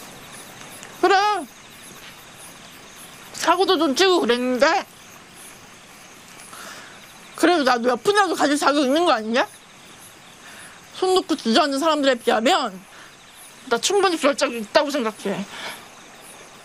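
A young woman speaks in a tearful, trembling voice close by.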